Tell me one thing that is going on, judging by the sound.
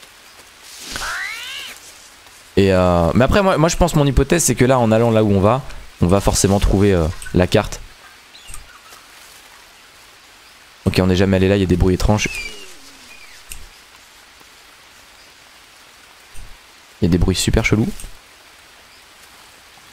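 Footsteps rustle through dense undergrowth.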